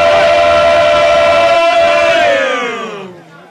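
Men sing loudly together at close range.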